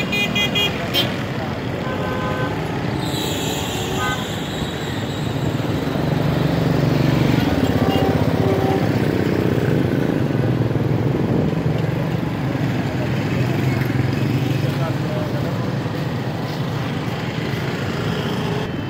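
Busy street traffic hums steadily outdoors.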